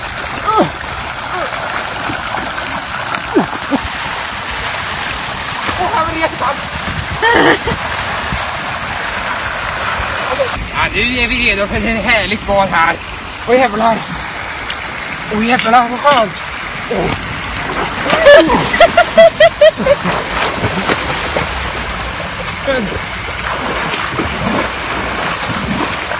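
A fountain splashes and gushes steadily.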